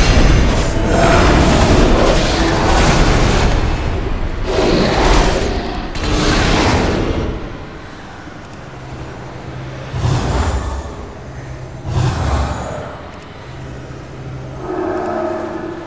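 Magic spells burst and crackle during a fight.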